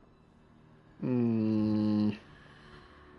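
A deep, steady musical horn sounds loudly for about a second as a box opens.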